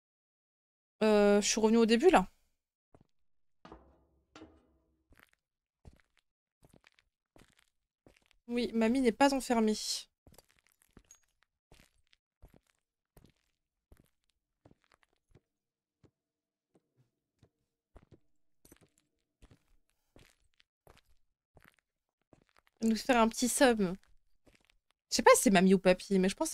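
A young woman speaks into a headset microphone in short bursts.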